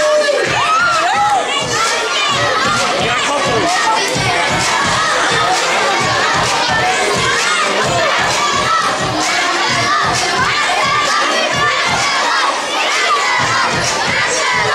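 A crowd of children and adults chatters in the background.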